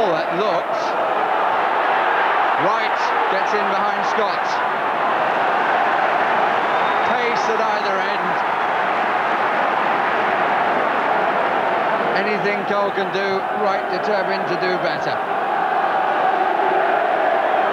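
A large stadium crowd roars and cheers throughout.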